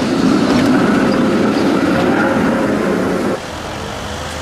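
A tram rumbles past close by.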